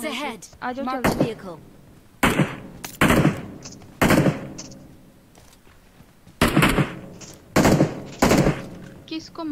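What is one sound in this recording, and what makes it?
Loud gunshots crack one at a time.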